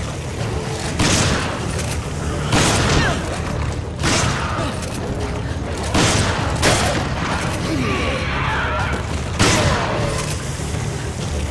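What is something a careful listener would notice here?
A shotgun fires in loud, booming blasts.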